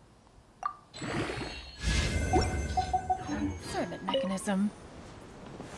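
A shimmering chime and whoosh rings out.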